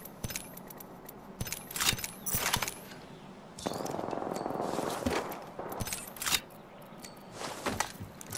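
Menu items click as they are selected.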